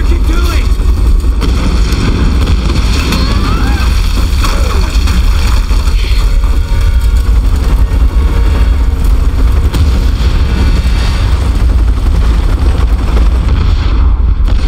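A helicopter's rotor thumps and roars steadily.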